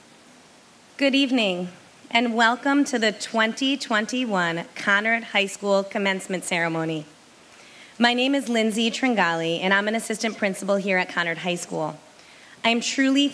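A woman speaks calmly through a loudspeaker.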